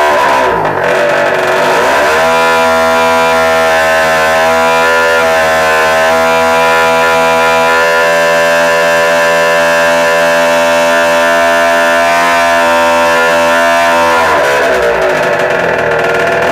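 An electric motor whines loudly, rising in pitch, holding steady, then winding back down.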